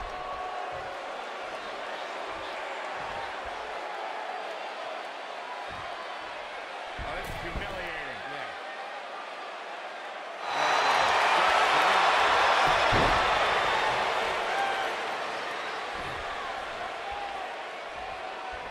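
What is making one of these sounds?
A crowd cheers steadily.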